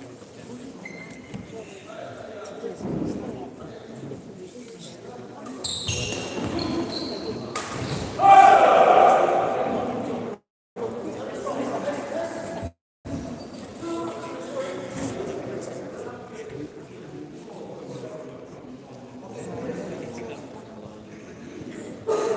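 Shoes squeak and shuffle on a hard court floor.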